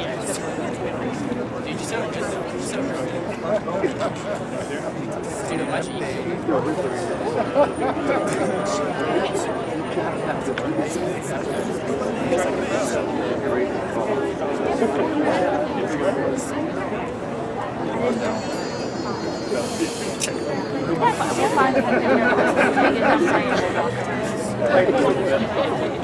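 A band of saxophones and brass plays a lively tune outdoors.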